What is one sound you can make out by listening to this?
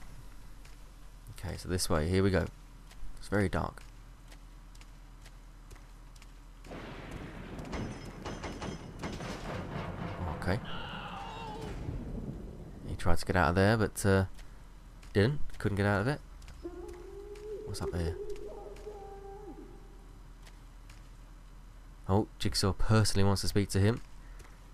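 Footsteps crunch slowly over scattered debris.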